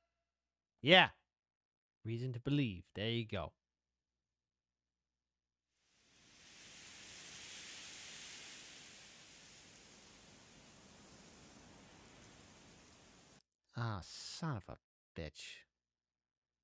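A man speaks casually and close into a microphone, in short bursts.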